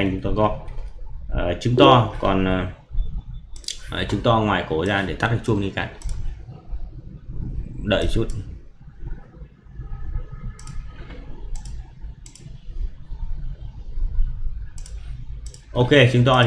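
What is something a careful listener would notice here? A man talks calmly into a microphone, explaining.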